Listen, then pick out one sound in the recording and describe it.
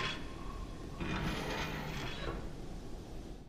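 A heavy metal door creaks slowly open.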